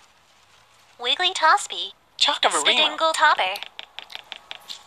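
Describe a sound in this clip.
A young girl talks close to a microphone.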